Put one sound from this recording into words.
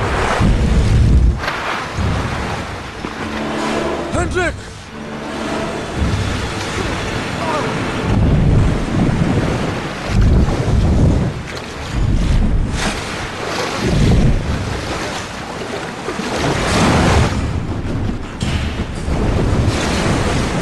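Rushing white water roars and splashes.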